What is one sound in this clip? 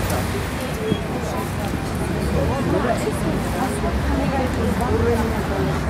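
Young women's voices chat nearby outdoors.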